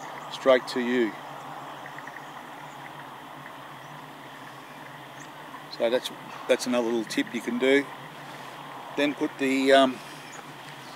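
A middle-aged man speaks in short, lively bursts close by.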